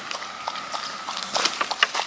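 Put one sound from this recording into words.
A small dog laps water from a bowl.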